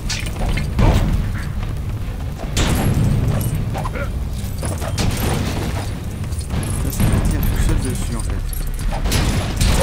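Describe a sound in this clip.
Coins jingle as they are scattered and collected.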